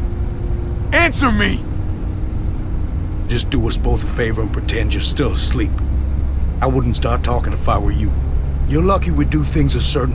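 A man answers gruffly and coldly, close by.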